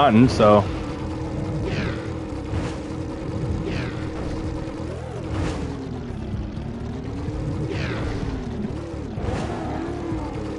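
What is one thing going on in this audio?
A hovering board hums steadily as it glides along, its pitch rising and falling.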